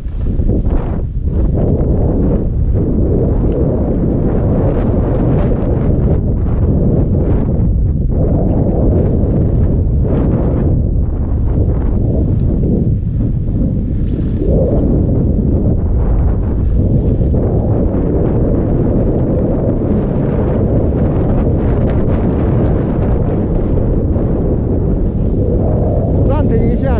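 Wind rushes loudly and steadily past a skier speeding downhill.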